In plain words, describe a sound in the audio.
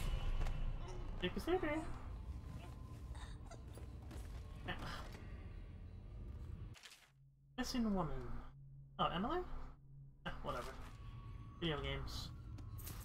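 A young woman talks casually into a microphone, close by.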